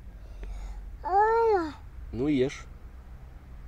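A small child speaks up close in a high voice.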